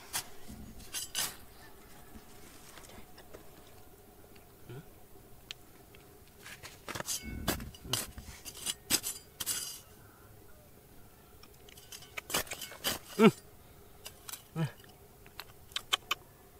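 Loose dirt and stones crunch and rattle as fingers dig.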